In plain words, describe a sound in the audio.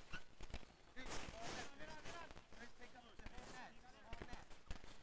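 Young men shout and call out outdoors.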